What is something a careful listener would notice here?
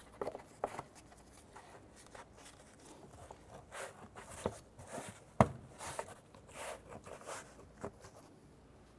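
A plastic cover clicks and knocks into place.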